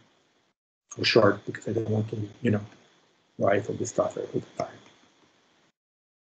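A man lectures calmly through an online call, speaking in short bursts with pauses.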